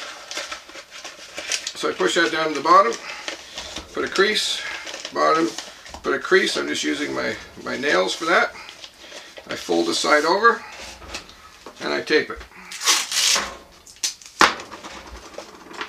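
Paper rustles and crinkles.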